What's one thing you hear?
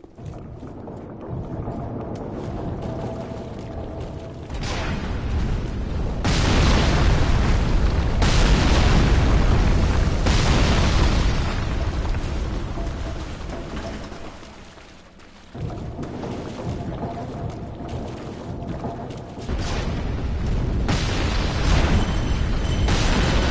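Armoured footsteps thud and clank over stone.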